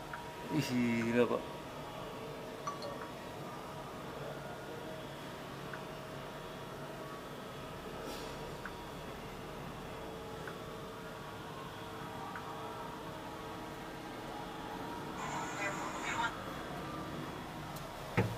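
A large overhead wheel of a cable lift turns with a steady mechanical hum.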